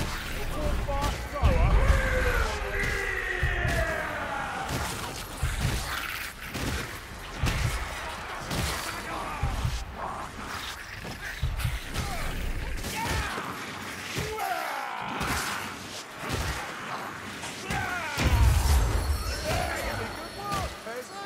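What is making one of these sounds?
Rat creatures squeal and screech shrilly.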